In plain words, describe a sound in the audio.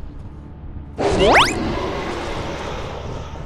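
A creature lets out a rising, piercing shriek.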